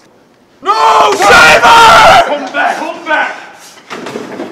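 A young man shouts loudly close by.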